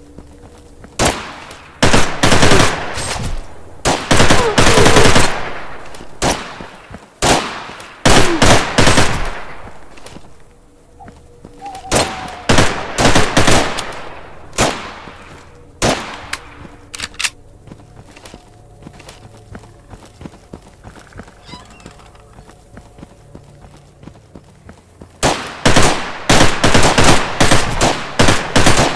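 A rifle fires in loud, rapid bursts that echo sharply.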